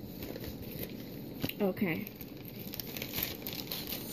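Plastic packaging crinkles in a hand.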